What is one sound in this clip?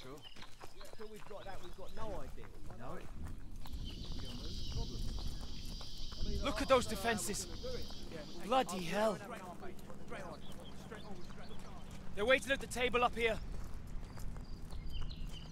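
Soldiers' boots crunch on gravel as they walk.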